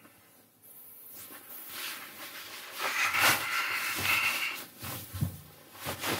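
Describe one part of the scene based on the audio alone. Bedsheets rustle as a man spreads them over a bed.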